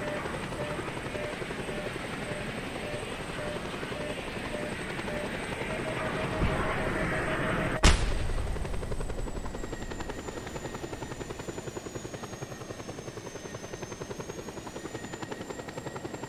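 Helicopter rotor blades thump rapidly and steadily overhead.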